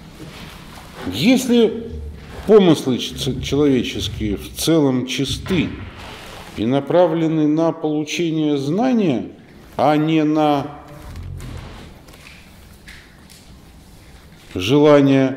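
A middle-aged man speaks expressively close by.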